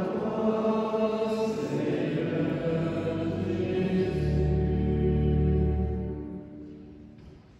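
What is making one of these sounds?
Men sing a slow chant together in an echoing hall.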